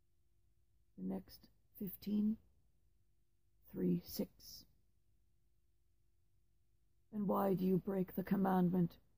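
A woman speaks calmly and close through a headset microphone, in short bursts with pauses.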